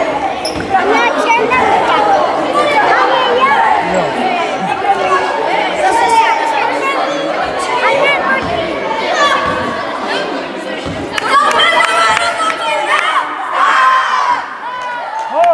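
A group of young boys chant and shout together in a large echoing hall.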